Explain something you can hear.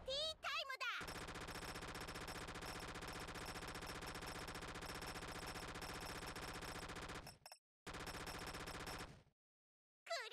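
Rapid electronic shots fire in a fast, buzzing stream.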